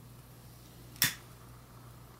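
A gas lighter clicks as it sparks.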